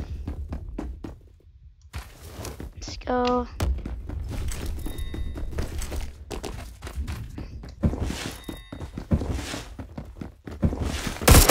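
Footsteps thud quickly as a game character runs.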